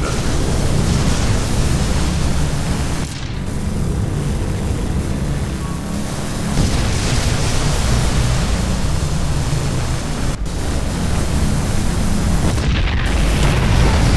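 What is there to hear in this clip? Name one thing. Laser beams zap and crackle in a game battle.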